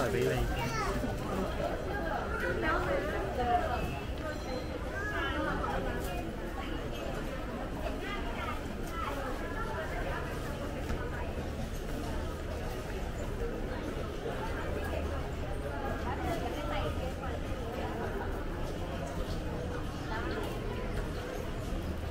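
A crowd of shoppers murmurs and chatters in an echoing indoor hall.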